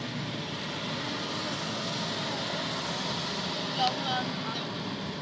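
Traffic rushes past on the road.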